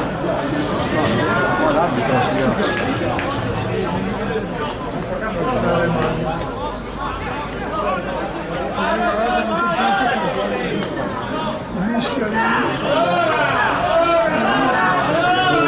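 Football players shout to each other across an open field.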